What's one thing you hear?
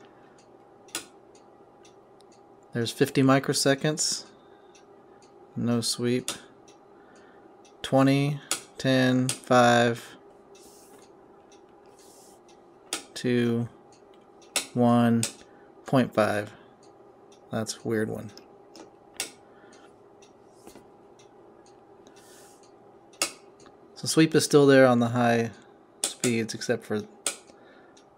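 Knobs click as they are turned.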